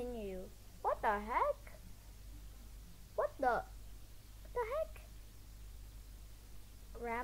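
A young girl speaks with animation close to a microphone.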